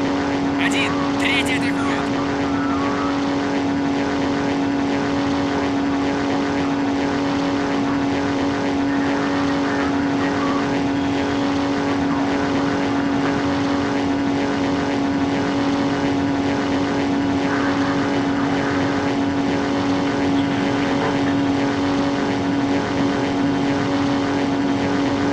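A propeller engine drones steadily and loudly throughout.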